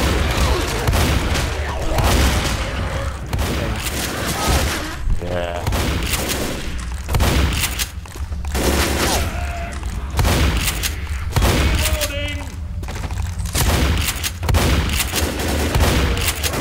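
A shotgun fires in loud blasts with echoing booms.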